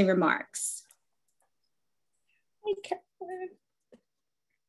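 A woman speaks cheerfully over an online call.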